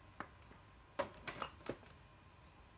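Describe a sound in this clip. A plastic power tool knocks and clatters as it is handled and set down.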